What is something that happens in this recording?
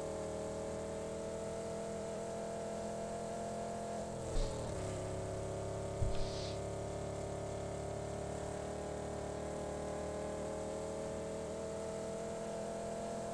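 A car engine drones steadily.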